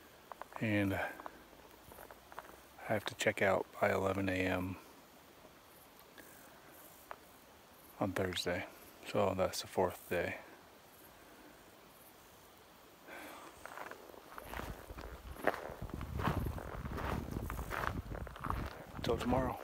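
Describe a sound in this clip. A man speaks quietly and close up, in short hushed phrases.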